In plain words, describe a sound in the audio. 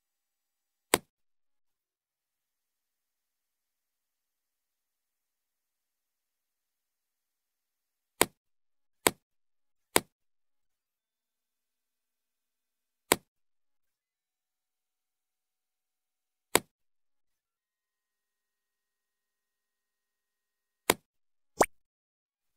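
Short game sound effects click as items snap into place.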